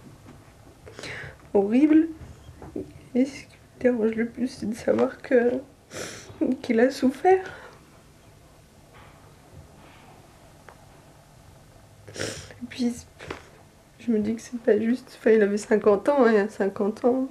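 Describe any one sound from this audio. A young woman speaks tearfully in a shaky voice, close by.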